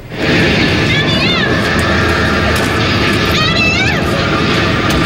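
A young woman sings through loudspeakers.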